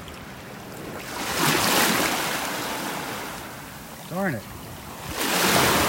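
Shallow waves wash over shells and pebbles on the shore, swelling and then fading.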